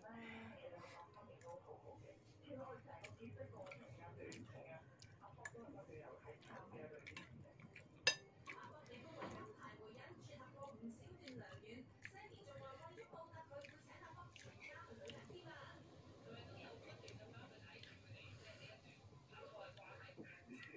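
A young woman chews and slurps food close to the microphone.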